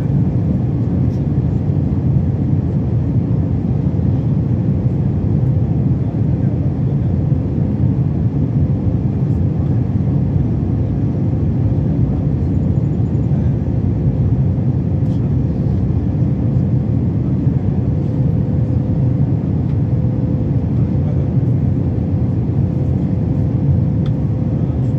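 Jet engines roar steadily with a deep, constant rumble inside an airliner cabin in flight.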